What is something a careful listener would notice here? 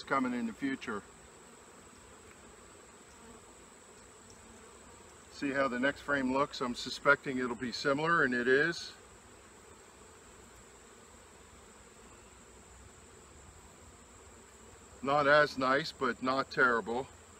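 A man talks calmly and close by, in short bursts.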